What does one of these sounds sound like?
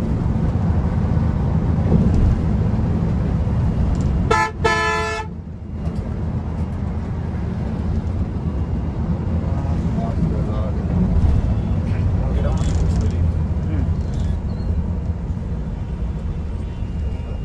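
A bus engine rumbles steadily while driving on a road.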